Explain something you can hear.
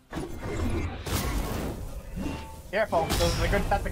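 An electric energy blast crackles and booms.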